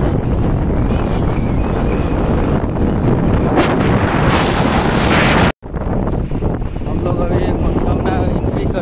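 Wind buffets loudly against a microphone outdoors.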